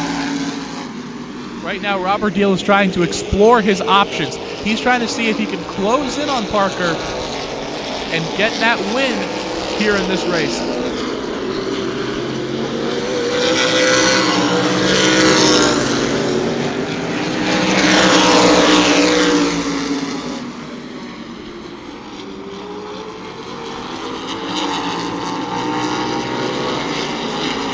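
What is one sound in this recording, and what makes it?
Race car engines roar as cars speed around the track.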